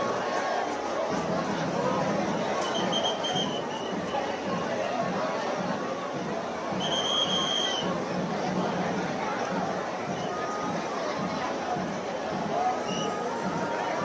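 A crowd of men and women chatters loudly close by.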